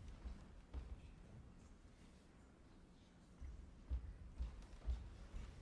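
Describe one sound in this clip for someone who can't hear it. Footsteps thud on a wooden stage floor.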